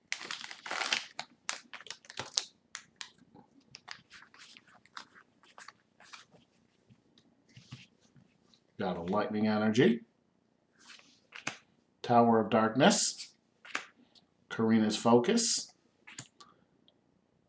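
Playing cards slide and shuffle against each other.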